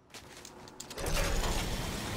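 Wind rushes loudly past a glider.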